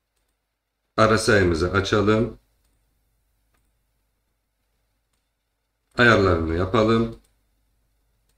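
A man speaks calmly and close to a microphone, in two short bursts.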